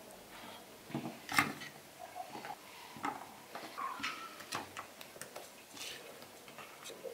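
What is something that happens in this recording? Vegetable slices are set down on a wooden plate.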